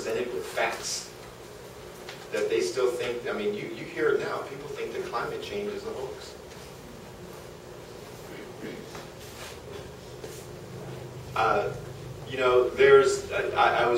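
A man speaks calmly to an audience in a room with some echo.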